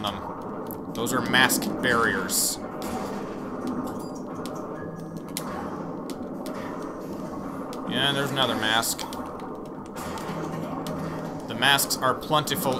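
Bouncy game music plays steadily.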